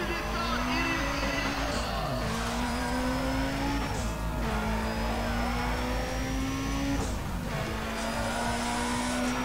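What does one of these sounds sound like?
A car engine accelerates, climbing in pitch through several gear changes.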